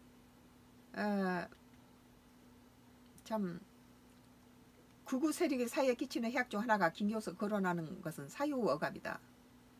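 An elderly woman speaks calmly and closely, as if into a microphone on an online call.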